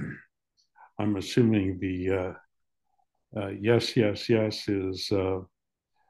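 An older man speaks with animation over an online call.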